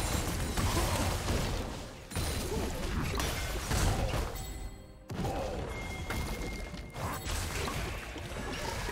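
Video game spell effects crackle and boom in a fast fight.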